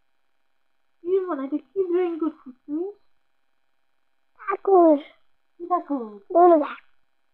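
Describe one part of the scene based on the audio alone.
A young girl talks cheerfully close by.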